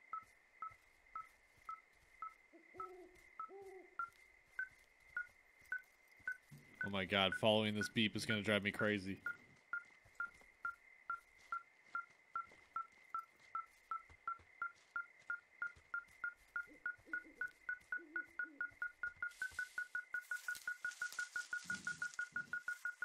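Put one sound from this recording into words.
A handheld detector beeps steadily, the beeps coming faster and faster.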